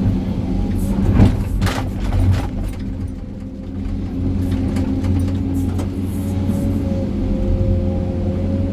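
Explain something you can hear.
Rocks scrape and clatter as an excavator bucket digs.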